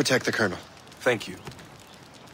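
A man answers briefly.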